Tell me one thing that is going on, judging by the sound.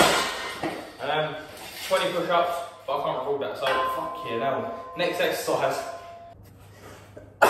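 A young man talks with animation close by.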